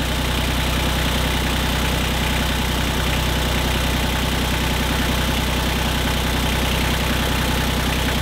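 A diesel tractor engine idles with a steady, rapid knocking rumble close by.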